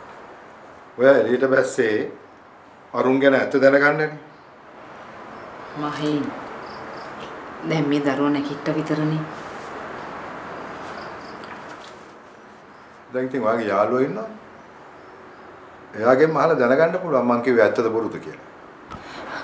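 A middle-aged man speaks firmly.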